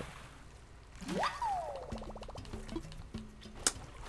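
Water splashes loudly as a swimmer bursts up out of the water.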